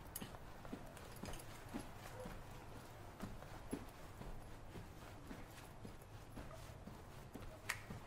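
Footsteps walk steadily along a hard floor.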